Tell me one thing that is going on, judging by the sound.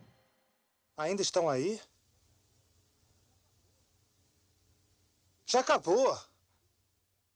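A young man speaks calmly and directly, close by.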